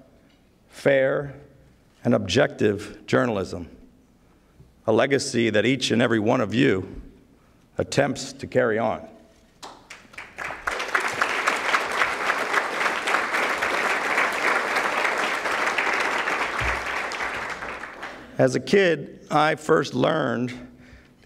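A middle-aged man speaks into a microphone in measured bursts.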